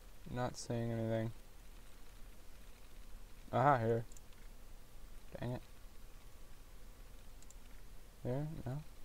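A computer terminal gives short electronic beeps and chirps.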